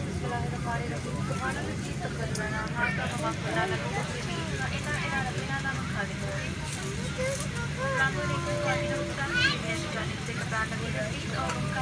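A steady low hum of aircraft engines and cabin air fills the space.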